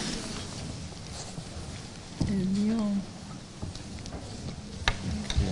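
Objects knock and rattle on a table.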